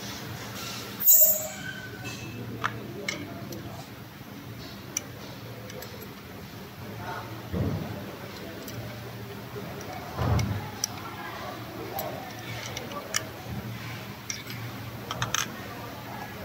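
Small plastic connectors click and rattle as they are handled and pushed together.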